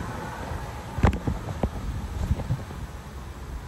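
Something knocks and thumps close by.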